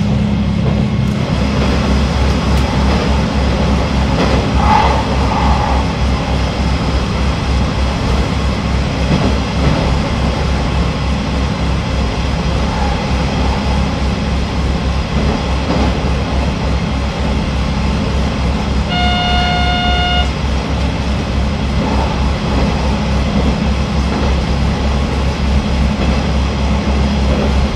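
A train rumbles steadily through a tunnel, its engine droning low.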